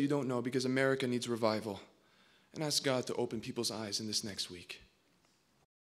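A young man speaks calmly into a microphone.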